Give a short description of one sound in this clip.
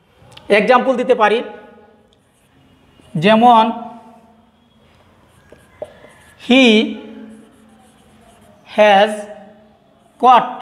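A man speaks slowly in short, drawn-out phrases, as if dictating, with pauses between them.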